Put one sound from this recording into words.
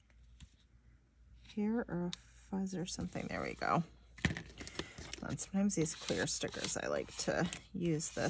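Paper rustles softly as a sticker is pressed down.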